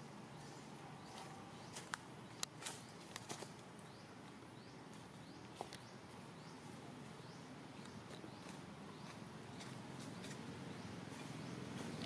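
A baby monkey nibbles and chews on a leaf close by.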